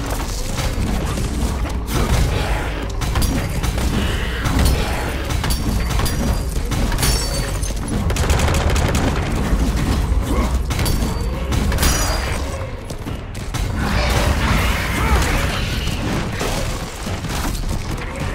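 A giant creature thuds and stomps heavily.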